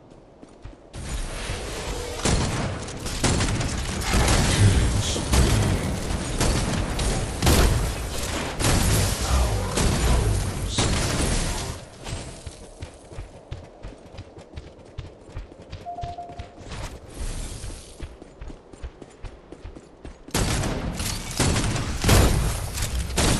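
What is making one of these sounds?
Fire blasts roar and crackle in a fight.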